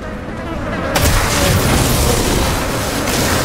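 Magic spell blasts crash during a video game battle.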